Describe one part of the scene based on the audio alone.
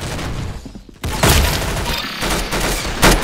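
A gun fires loud sharp shots.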